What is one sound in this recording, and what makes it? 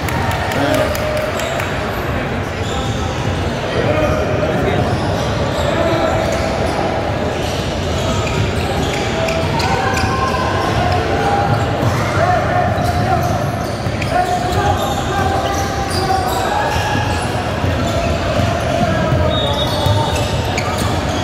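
Teenage boys call out to each other across an echoing gym.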